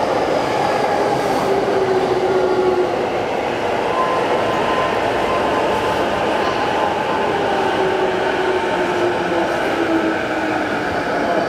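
A train's wheels squeal faintly against the rails as it passes.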